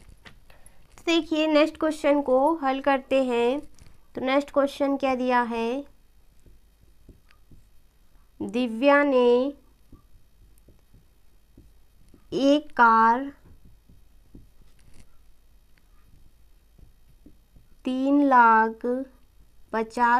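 A young woman speaks clearly and calmly in short phrases, as if teaching.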